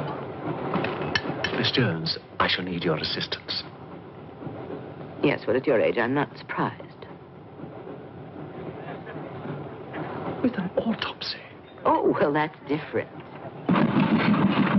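Diners murmur and cutlery clinks in a busy room.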